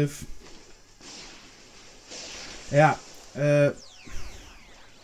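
A burst of energy whooshes and crackles.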